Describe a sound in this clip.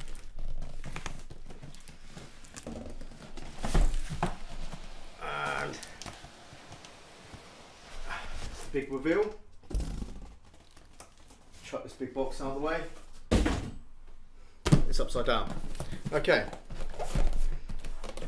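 Cardboard rustles and scrapes as a box is handled and pulled out.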